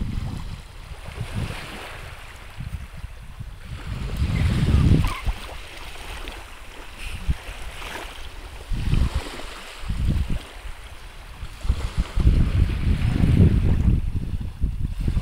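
Wind blows across the microphone outdoors in gusts.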